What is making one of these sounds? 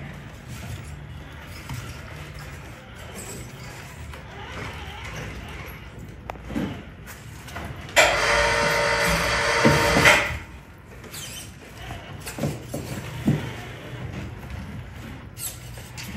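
Plastic tyres scrape and knock over rock.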